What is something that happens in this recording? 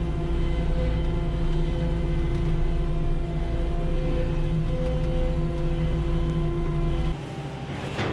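A machine's engine drones loudly close by.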